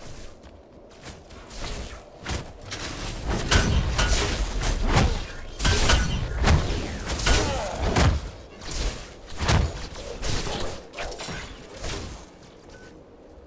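Weapons fire and explosions boom in a fast, loud fight.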